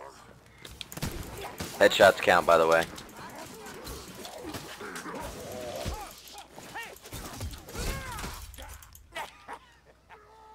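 A sword slashes and strikes enemies with heavy blows.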